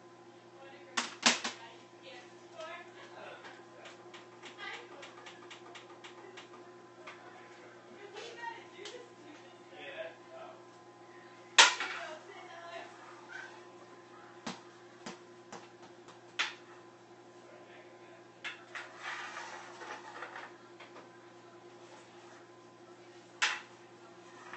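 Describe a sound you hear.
A plastic stick smacks a ball sharply several times.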